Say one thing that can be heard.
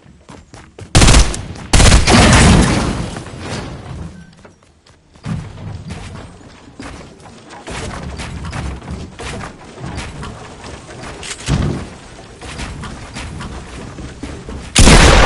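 Wooden walls and ramps knock and clatter as they are quickly built.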